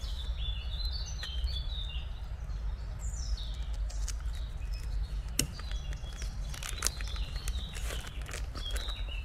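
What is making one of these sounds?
Charcoal crackles softly in a small grill.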